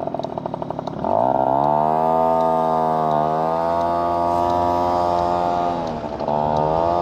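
A motorcycle engine revs up loudly and accelerates, dipping briefly at a gear change.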